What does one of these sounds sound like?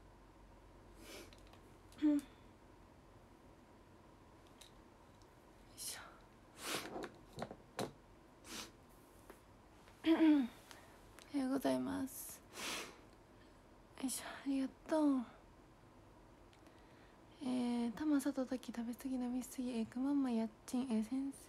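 A young woman speaks softly and playfully close to a microphone, in short bursts.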